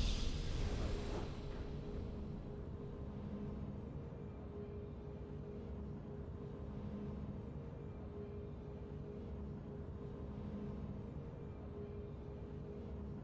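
Soft video game victory music plays.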